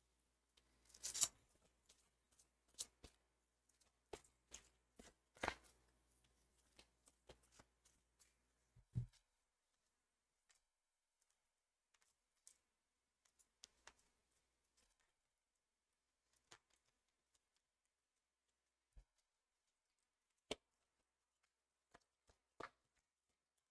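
Cards shuffle and slap softly onto a surface.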